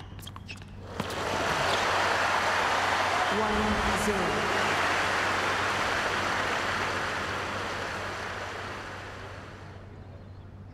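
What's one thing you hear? A crowd applauds loudly and then fades.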